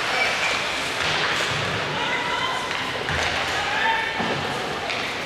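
Ice skates scrape across the ice in a large echoing arena.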